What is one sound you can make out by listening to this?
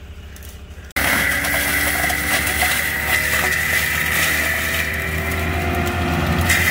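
A mulcher's spinning drum grinds through brush and soil.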